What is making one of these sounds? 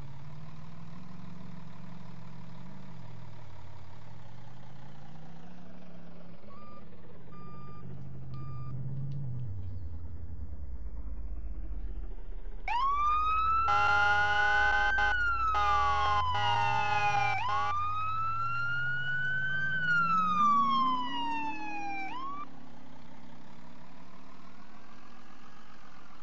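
A heavy truck engine rumbles and changes pitch as it drives.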